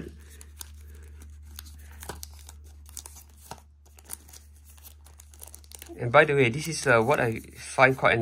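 Foil packaging crinkles as it is handled.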